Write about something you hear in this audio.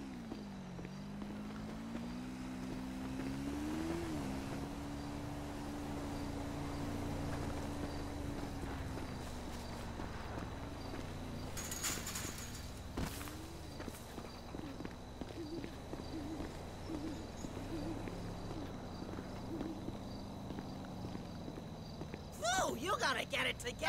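Footsteps crunch on gravel and dirt.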